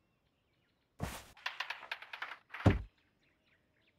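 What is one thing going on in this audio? A heavy door scrapes and creaks open.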